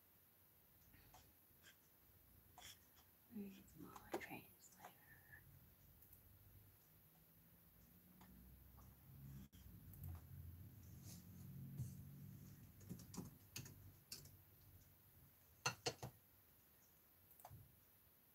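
Small objects click and tap against a table.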